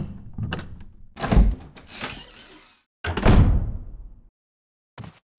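A heavy wooden door creaks open and thuds.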